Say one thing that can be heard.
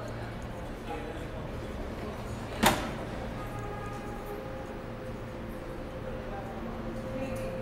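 A subway train hums steadily while standing at an echoing underground platform.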